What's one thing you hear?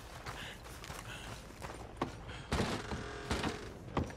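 Boots thump on wooden boards.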